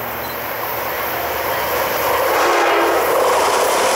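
A diesel train approaches, its engine rumbling louder as it nears.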